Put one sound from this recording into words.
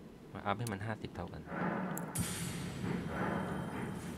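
Short menu clicks sound in quick succession.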